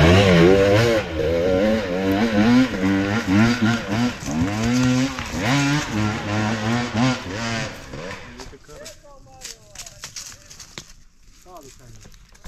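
A dirt bike engine revs hard and fades into the distance.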